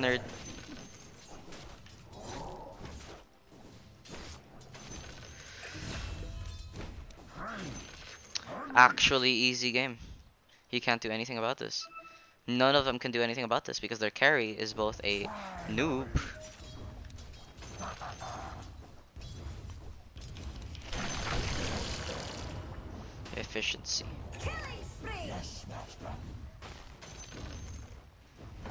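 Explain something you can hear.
Game fighting effects clash and crackle throughout.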